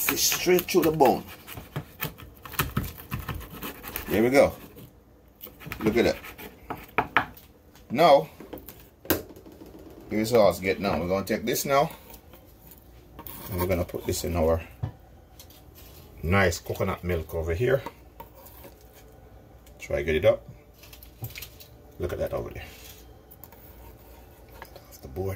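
A knife cuts through fish and taps on a wooden board.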